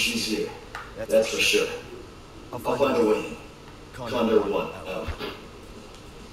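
A man speaks calmly through a crackling radio.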